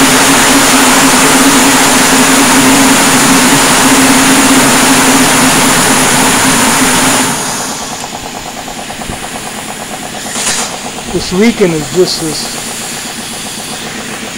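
A large spinning saw blade whirs with a loud, steady hum, then turns quieter as it coasts.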